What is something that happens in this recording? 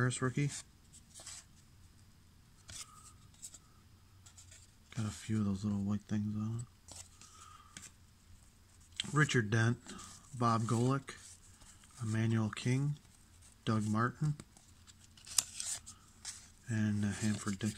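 Trading cards rustle and slide as hands flip through a stack.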